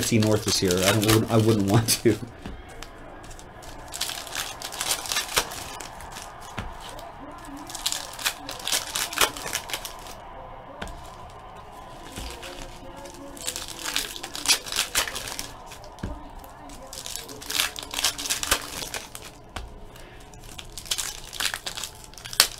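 Foil card wrappers crinkle and tear as they are ripped open.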